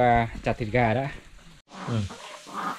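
Water splashes as it is poured from a bucket.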